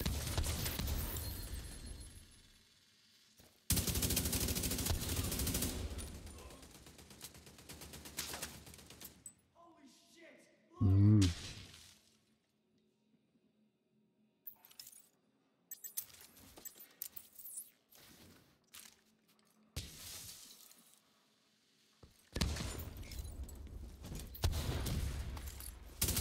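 Gunfire crackles in rapid bursts, echoing in a large enclosed space.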